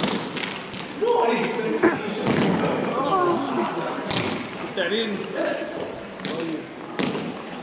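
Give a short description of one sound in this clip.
Distant players shout and call out to one another.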